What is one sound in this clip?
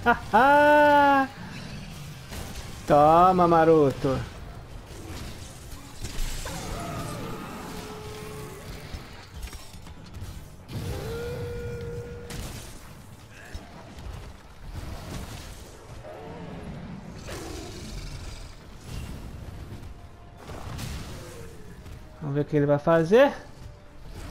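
A huge beast lets out loud, shrill roars.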